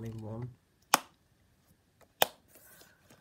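A plastic case clicks shut.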